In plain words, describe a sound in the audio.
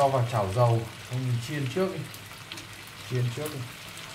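Chopsticks stir shrimp in a metal frying pan.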